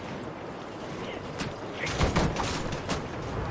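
A crowd of armoured soldiers runs with clattering footsteps across stone.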